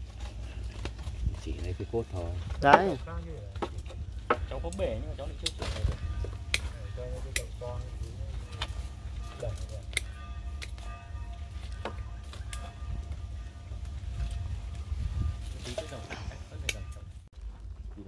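Hand tools clip and scrape with sharp clicks.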